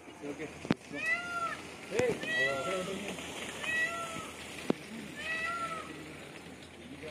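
A peacock calls loudly several times, with shrill, wailing cries.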